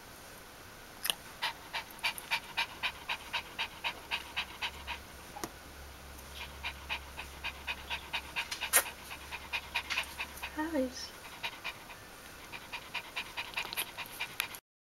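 Newborn puppies suckle with soft, quick smacking sounds.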